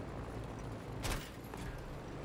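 An explosion bursts with a sharp crack.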